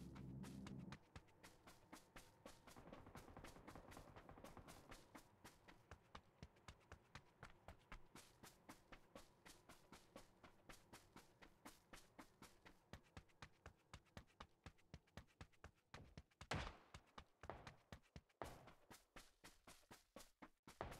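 Footsteps of a running game character patter rapidly.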